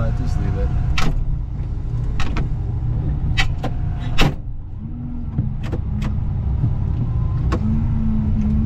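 Metal parts clank and knock.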